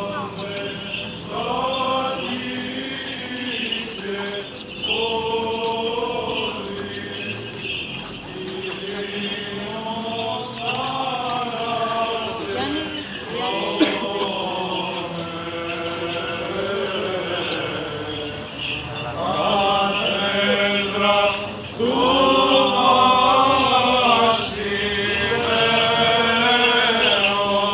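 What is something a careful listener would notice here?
Men chant together in long, drawn-out lines close by, outdoors.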